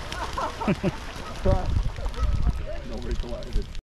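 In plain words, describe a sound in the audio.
Geese splash into the water.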